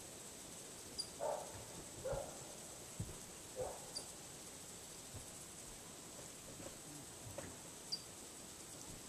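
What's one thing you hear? Wind chimes tinkle softly now and then.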